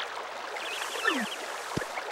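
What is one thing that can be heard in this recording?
A cartoonish springy sound plays as a game character jumps with joy.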